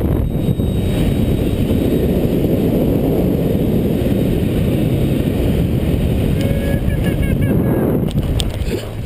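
Wind roars loudly against the microphone.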